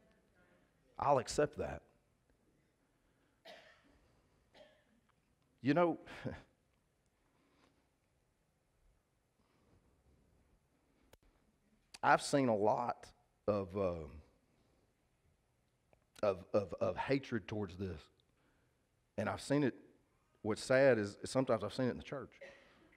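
A man speaks calmly through a headset microphone, with long pauses.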